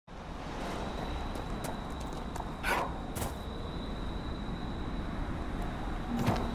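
Heavy footsteps thud steadily.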